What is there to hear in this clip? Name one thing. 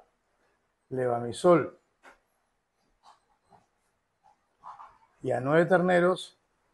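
An elderly man speaks calmly nearby, in short phrases with pauses.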